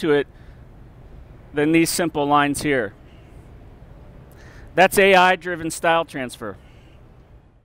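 A middle-aged man speaks calmly into a microphone nearby.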